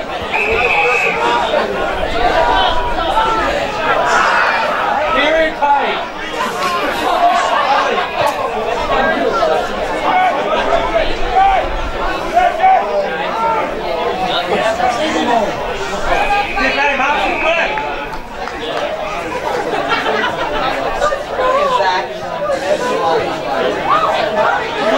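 Men shout and call out nearby outdoors.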